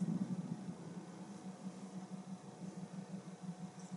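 A metal pistol scrapes and clicks as it is picked up from a wooden floor.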